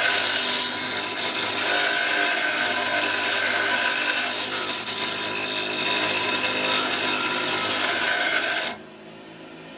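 Metal grinds against a spinning wheel with a harsh, high hiss.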